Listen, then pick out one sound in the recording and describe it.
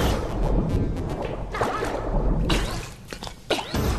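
A game character splashes up out of water.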